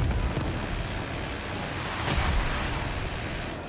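Explosions boom and rumble below.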